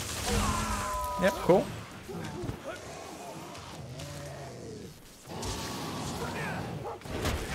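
Electric crackles ring out from a game.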